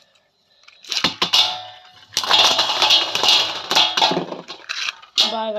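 Spinning tops clack as they collide and bounce off the metal rim.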